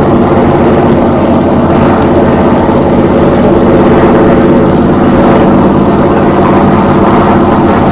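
A propeller plane's engine drones steadily overhead.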